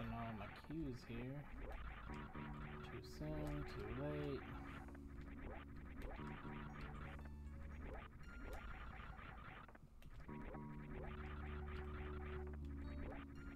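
Retro video game sound effects chirp and sweep up and down.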